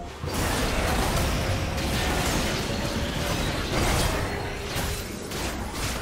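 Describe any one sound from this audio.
Video game spells blast and crackle in a busy fight.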